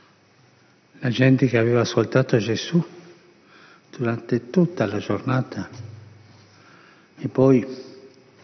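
An elderly man speaks slowly and calmly into a microphone in an echoing room.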